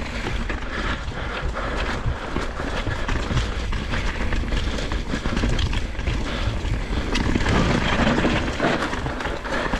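Bicycle tyres roll fast over a bumpy dirt trail.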